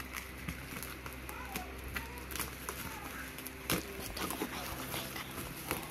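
Scissors snip through plastic packaging.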